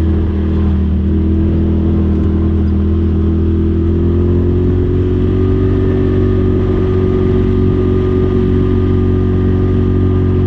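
An off-road vehicle's engine hums steadily and rises slightly in pitch as it speeds up.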